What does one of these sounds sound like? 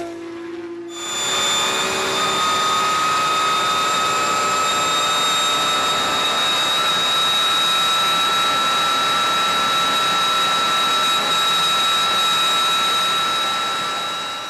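A race car engine drones steadily at high revs, heard from inside the car.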